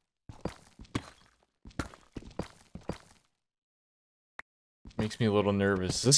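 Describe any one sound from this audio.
A pickaxe chips and cracks stone blocks.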